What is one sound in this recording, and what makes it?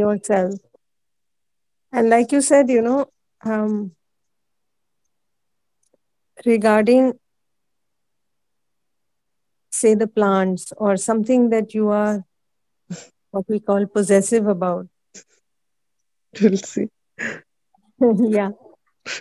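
A middle-aged woman speaks calmly with pauses, heard through an online call.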